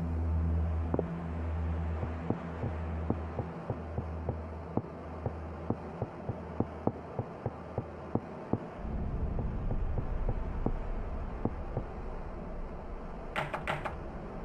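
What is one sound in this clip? Footsteps tap quickly on hard pavement.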